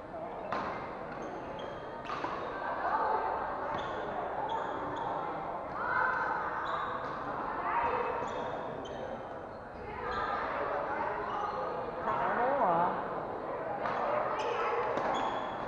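Men and women chat and call out in the background.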